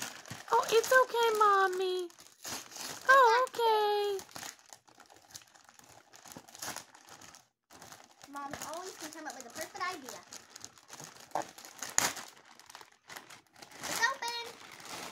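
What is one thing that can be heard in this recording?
A young girl talks with excitement close to a microphone.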